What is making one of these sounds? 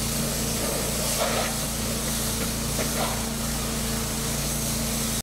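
Water sprays from a hose onto pavement with a hiss.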